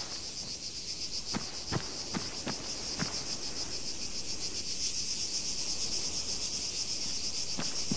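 Boots tread on a road.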